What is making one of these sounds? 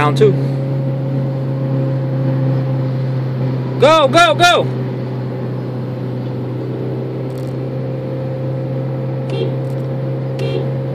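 A four-cylinder car engine drones, heard from inside the cabin.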